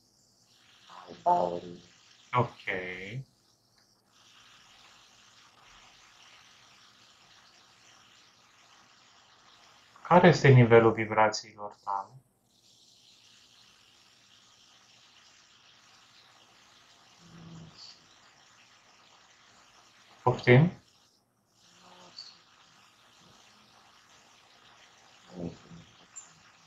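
A man speaks calmly in short bursts over an online call.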